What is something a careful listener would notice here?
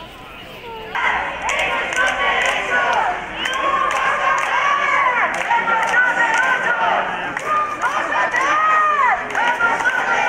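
A crowd of men and women chants and sings loudly outdoors.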